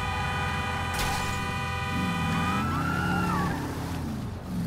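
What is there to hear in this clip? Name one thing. Tyres skid on a road.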